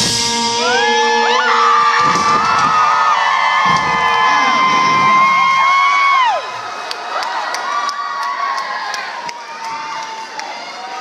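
An electric guitar plays sustained, bending notes through an amplifier, loud at first and then quieter.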